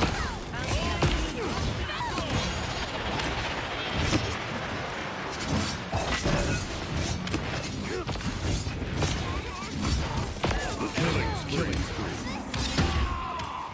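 Weapons fire in quick bursts with sharp whooshing blasts.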